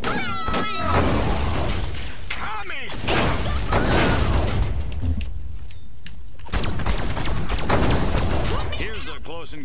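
An electric energy beam crackles and roars in bursts.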